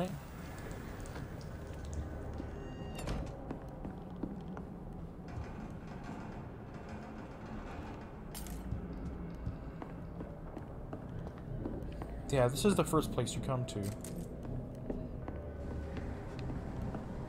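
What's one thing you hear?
Footsteps thud slowly across wooden floorboards.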